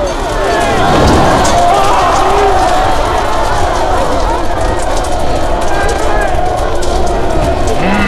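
A huge army of warriors roars and chants.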